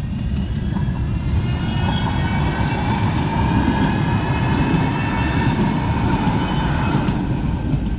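A tram rolls past with a low rumble.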